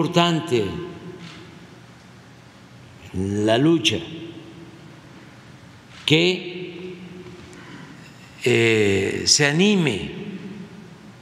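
An elderly man speaks with animation into a microphone in a reverberant room.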